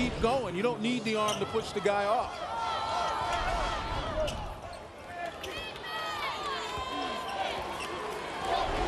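A large crowd murmurs in an echoing arena.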